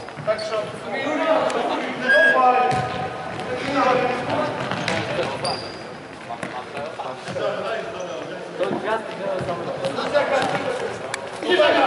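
A football thuds off players' feet in a large echoing hall.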